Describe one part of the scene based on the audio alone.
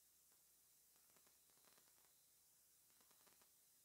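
Water pours onto dry seeds in a metal bowl.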